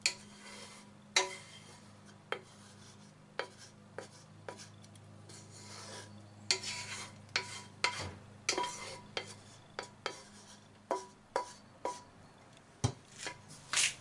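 Sauce pours and drips into a bowl.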